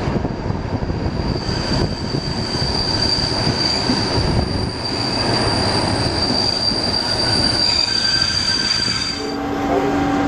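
A train rumbles and clatters along the rails.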